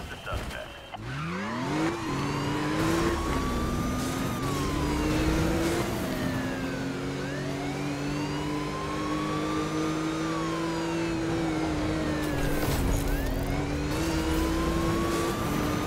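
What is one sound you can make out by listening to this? A car engine roars at high speed, revving up and down.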